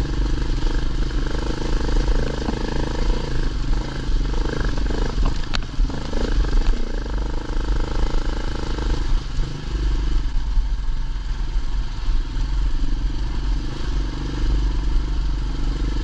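Tyres crunch over loose rocks and gravel.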